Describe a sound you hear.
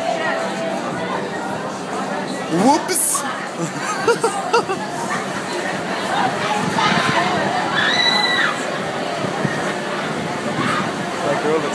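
A roller coaster train rumbles and clatters along its track.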